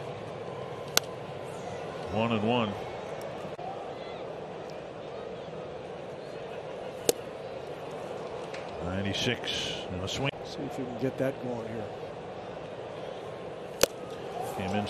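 A baseball smacks into a catcher's leather mitt.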